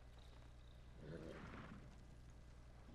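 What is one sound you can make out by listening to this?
A horse snorts softly.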